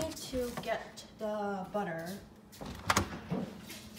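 A refrigerator door opens with a soft thud.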